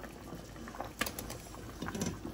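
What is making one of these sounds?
Eggs plop into a pot of broth.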